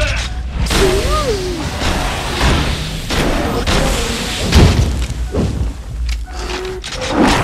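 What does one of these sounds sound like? A creature screeches and growls.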